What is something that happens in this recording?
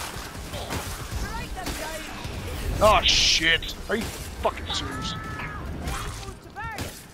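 Blades slash and thud into flesh in quick, heavy blows.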